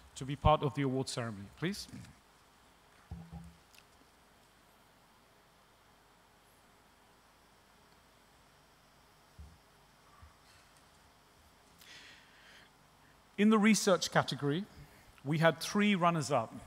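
A man speaks calmly through a microphone and loudspeakers in a large hall.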